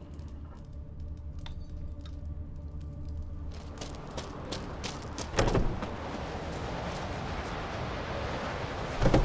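Footsteps crunch over stone and gravel.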